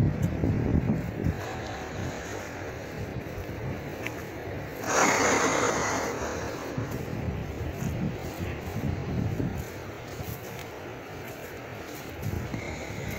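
Grass swishes against legs while walking.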